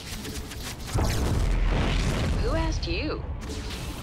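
A deep explosion booms.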